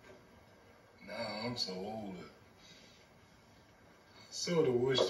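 An elderly man speaks slowly in a low voice.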